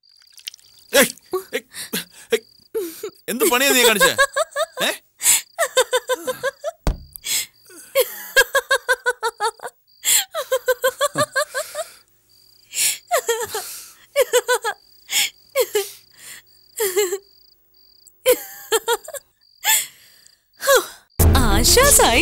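A young woman speaks playfully, close by.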